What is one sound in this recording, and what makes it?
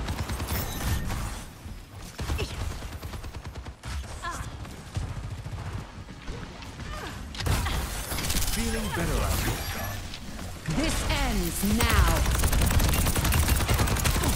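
Energy weapons fire in rapid zapping bursts.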